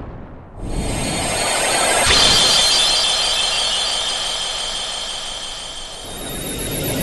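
A magical burst of light shimmers and rings brightly.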